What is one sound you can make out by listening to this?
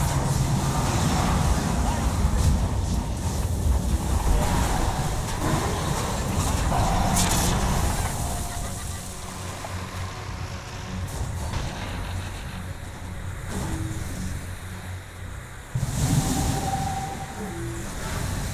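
Magic spells whoosh and blast.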